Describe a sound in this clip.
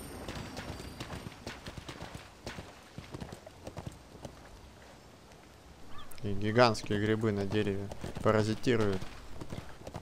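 A horse's hooves thud along at a steady gait.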